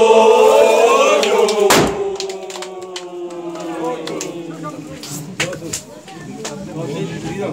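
A group of men sing together loudly, close by.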